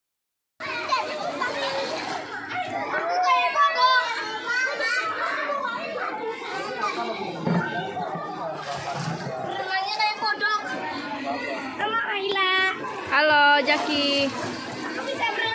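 Water splashes as children play.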